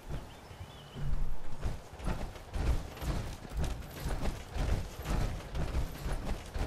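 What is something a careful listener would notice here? Heavy armoured footsteps thud in a steady rhythm.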